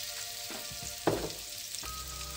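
Minced meat drops into a frying pan with a soft thud.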